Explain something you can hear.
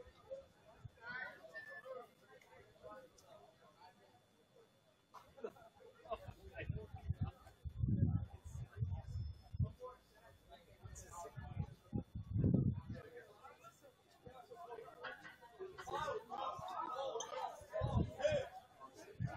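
A small crowd of men and women chatters at a distance outdoors.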